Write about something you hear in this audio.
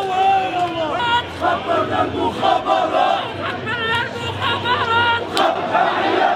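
Women wail and ululate in high voices.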